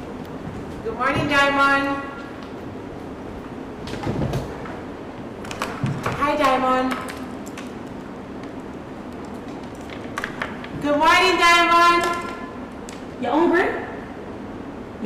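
A woman speaks with animation on a stage, her voice carrying in a hall.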